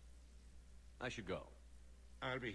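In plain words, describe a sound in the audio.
A younger man speaks a short line calmly.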